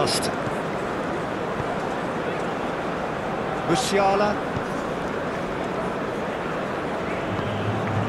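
A large stadium crowd roars steadily.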